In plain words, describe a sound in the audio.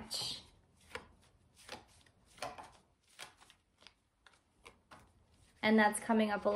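Playing cards riffle and slap together as they are shuffled.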